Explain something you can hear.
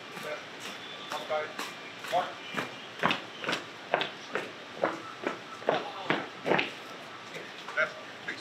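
Many boots march in step on pavement.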